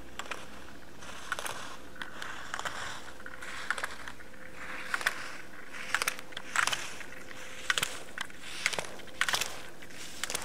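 Skis scrape and hiss across hard snow in quick turns.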